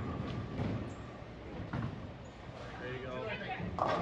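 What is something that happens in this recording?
A bowling ball rolls down a wooden lane with a low rumble.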